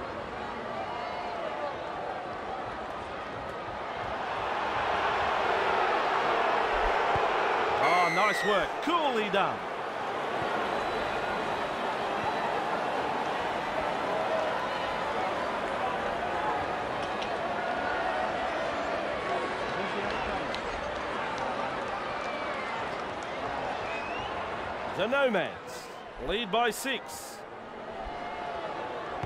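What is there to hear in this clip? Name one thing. A large stadium crowd cheers and roars steadily, swelling loudly for a few seconds.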